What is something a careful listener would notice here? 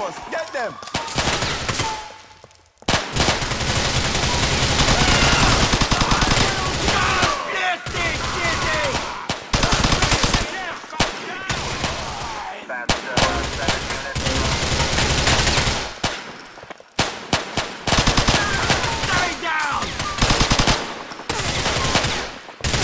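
A submachine gun fires rapid bursts in an echoing hall.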